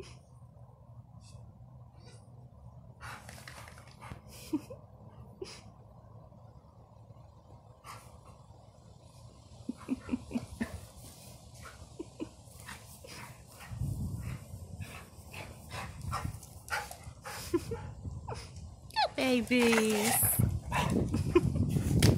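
Two dogs growl and snarl playfully while wrestling.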